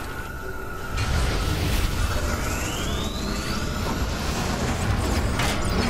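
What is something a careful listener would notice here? Magic blasts and hits crackle and boom during a fight.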